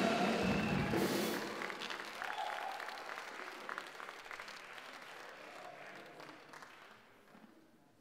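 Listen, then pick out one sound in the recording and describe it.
A crowd of young people cheers loudly in an echoing hall.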